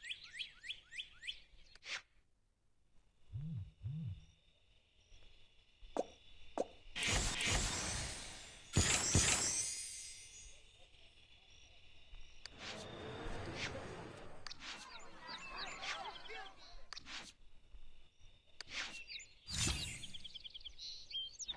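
Game interface sounds chime and click.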